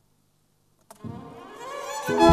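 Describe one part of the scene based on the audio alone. A woman begins to sing loudly into a microphone.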